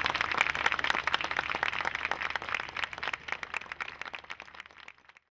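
A large audience applauds, then the applause fades away.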